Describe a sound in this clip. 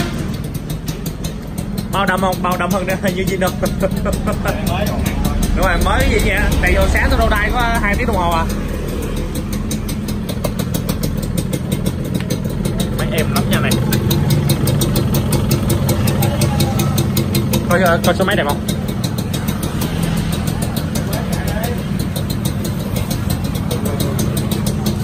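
A motorcycle engine idles with a steady, rapid putter.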